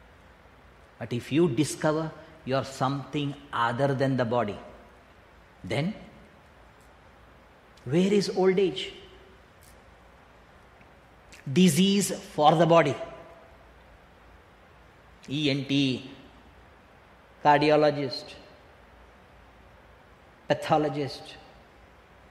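An elderly man recites slowly in short phrases with pauses between them.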